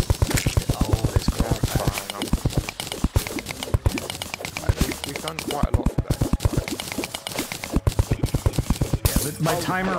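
A pickaxe chips rapidly at rock in quick, repeated blows.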